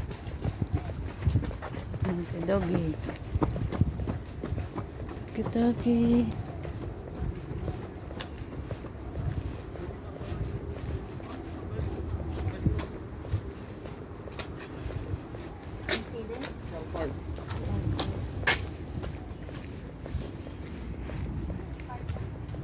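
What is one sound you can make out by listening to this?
Footsteps tap steadily on a paved path.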